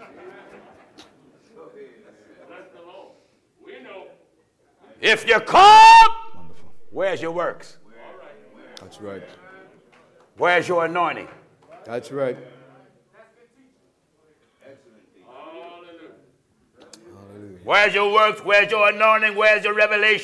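A man preaches with passion over a microphone, at times shouting, in a large echoing hall.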